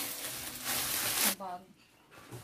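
Plastic wrapping crinkles in a woman's hands.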